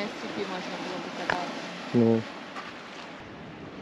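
Small waves wash gently over a shallow reef.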